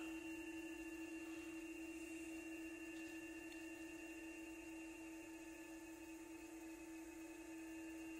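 A radio receiver plays a steady, faintly pulsing electronic tone through a laptop speaker.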